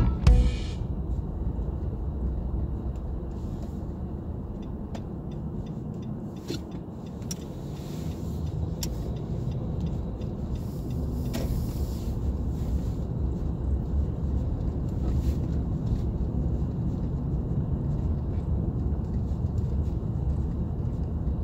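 A car engine rumbles low and steady as it drives slowly.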